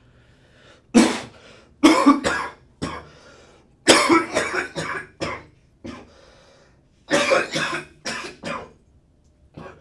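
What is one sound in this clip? A young man coughs hard and repeatedly, close by.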